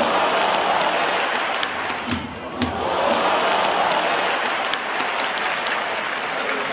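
A large stadium crowd cheers outdoors.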